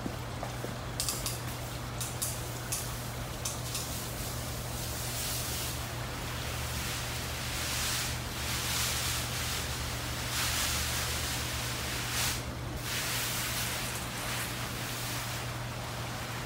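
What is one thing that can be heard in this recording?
A hose sprays water in short hissing bursts.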